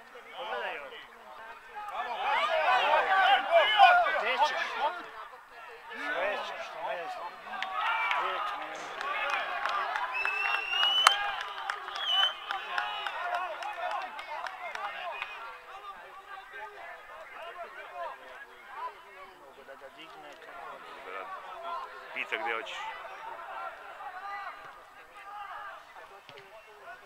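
Young men shout and call to each other outdoors across an open field.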